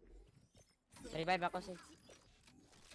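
A bright magical whoosh bursts out loudly.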